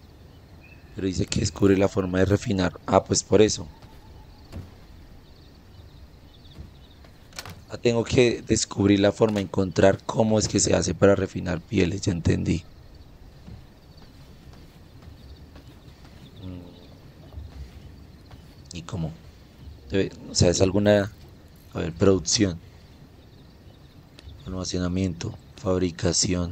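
A young man talks calmly and with animation into a close microphone, in short bursts with pauses.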